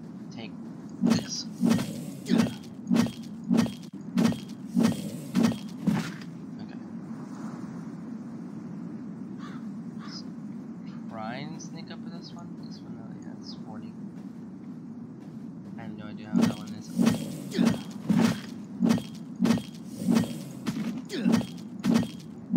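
Punches land with dull, rhythmic thuds in a fight.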